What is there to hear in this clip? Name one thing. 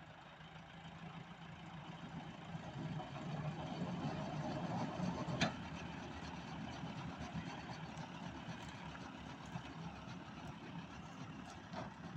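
A diesel tractor engine runs under load while pulling.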